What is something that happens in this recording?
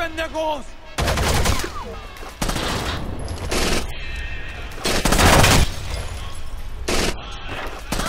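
Gunshots fire in short, loud bursts.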